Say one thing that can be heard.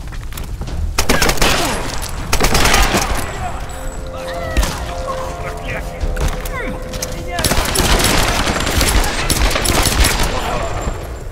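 Gunshots crack in loud rapid bursts.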